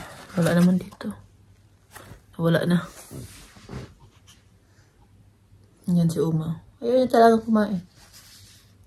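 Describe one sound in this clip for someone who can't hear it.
A woman speaks calmly close by, in short phrases.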